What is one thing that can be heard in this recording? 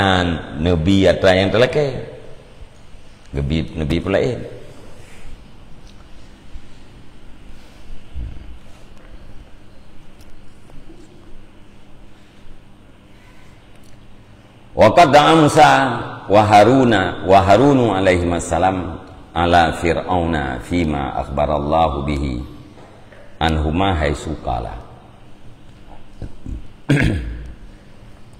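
A middle-aged man speaks calmly and close into a microphone, with long pauses.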